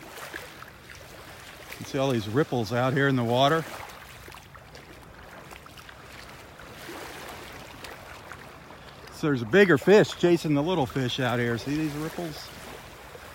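Calm water laps gently at the shore.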